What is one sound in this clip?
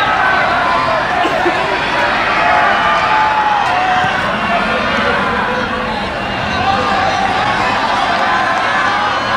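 A large crowd of spectators chatters and cheers outdoors.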